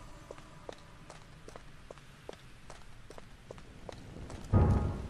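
Footsteps patter quickly and evenly on the ground.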